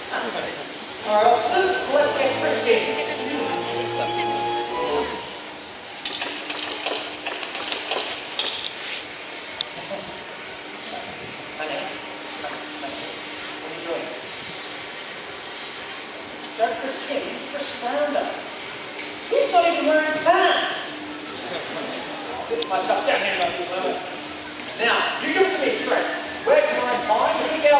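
A man speaks with animation over a loudspeaker outdoors.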